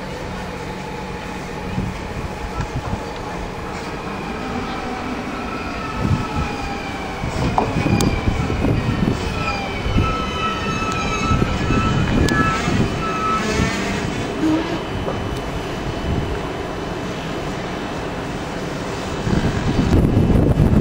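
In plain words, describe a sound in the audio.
A train rumbles into the station and slows to a stop.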